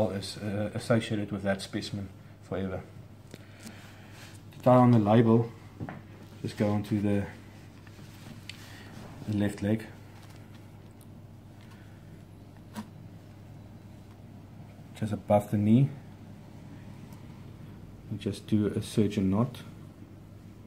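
A man speaks calmly and close by, explaining in short phrases with pauses.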